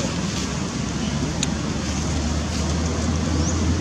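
A monkey chews on a plastic object.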